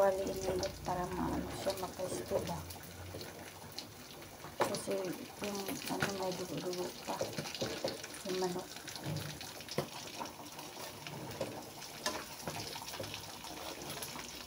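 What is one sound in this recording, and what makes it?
Metal tongs clink against a metal wok while turning pieces of roast chicken.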